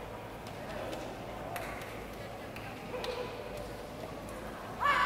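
A crowd chatters and murmurs in a large echoing hall.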